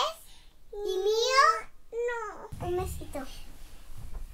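A little girl speaks in a high, sing-song voice close by.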